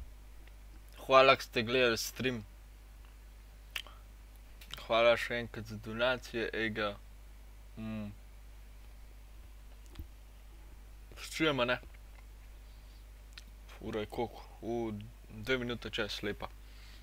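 A young man speaks casually into a close microphone, in short bursts.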